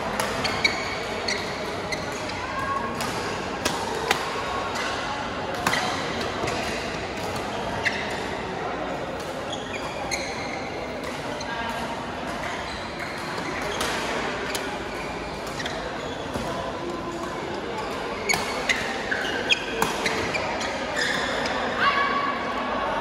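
Badminton rackets smack shuttlecocks in sharp, scattered hits.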